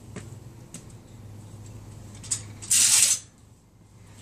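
A metal gate rattles as it is opened.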